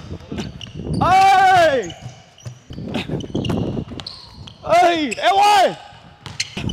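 Sneakers squeak loudly on a hardwood court in an echoing gym.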